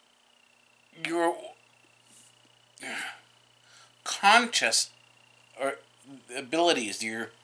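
A middle-aged man speaks calmly and close to the microphone, in short bursts.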